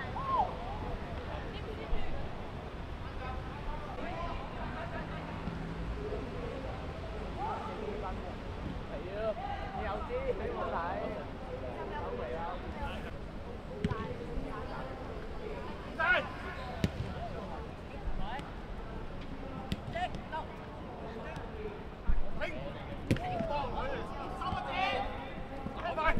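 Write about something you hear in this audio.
Young players shout to each other across an open pitch outdoors.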